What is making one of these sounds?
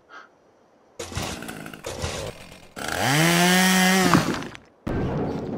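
A hand drill whirs as it bores.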